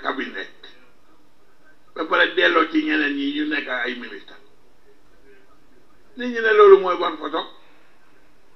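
An elderly man speaks into a microphone in short bursts.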